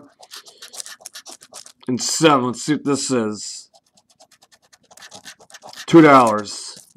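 A coin scratches quickly across a card in short rasping strokes.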